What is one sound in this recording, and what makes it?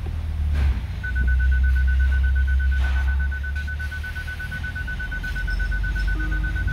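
A car warning chime beeps rapidly and steadily.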